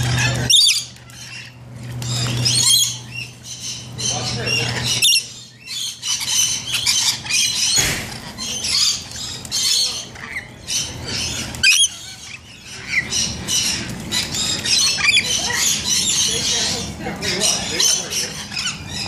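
Birds splash and flap about in shallow water.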